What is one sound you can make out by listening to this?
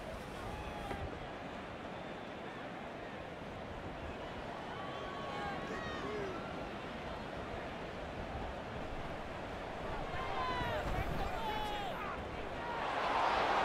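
A large crowd murmurs steadily in a big open stadium.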